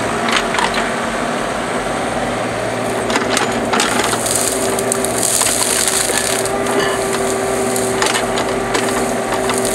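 A small excavator's diesel engine rumbles steadily close by.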